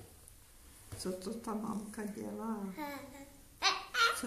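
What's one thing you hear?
An elderly woman speaks softly and playfully, close by.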